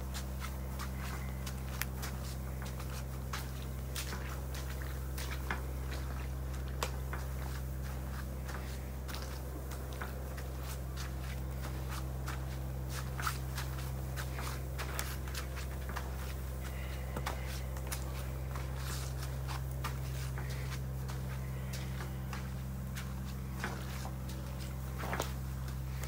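A hand roller rolls over dense rice seedlings, brushing and crackling through the leaves.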